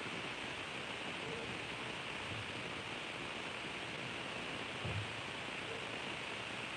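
Liquid fizzes softly in a jug.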